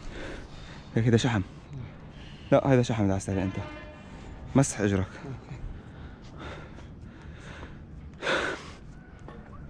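A young man speaks close by in short bursts, with excitement.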